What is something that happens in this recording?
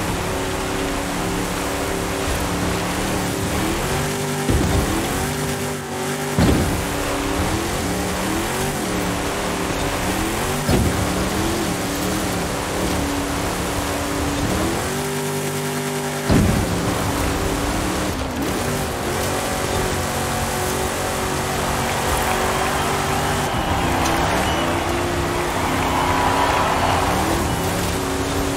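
Tyres crunch and skid over loose dirt.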